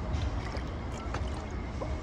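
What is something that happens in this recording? A young man gulps water.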